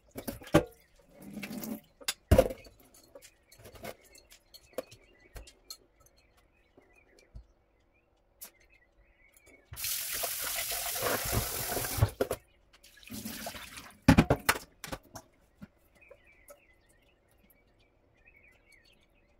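Wet grains rustle as they are poured and shaken.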